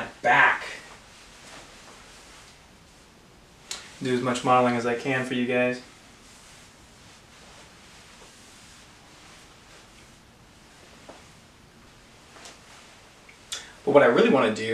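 A young man speaks with animation, close by, in short bursts with pauses.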